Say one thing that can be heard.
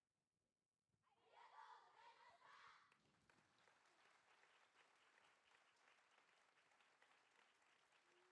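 An audience cheers and applauds in a large hall.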